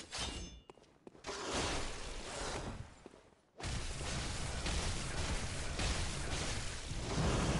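Blows and slashes land in a fierce fight.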